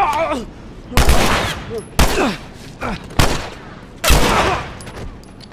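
Pistol shots ring out loudly, one after another.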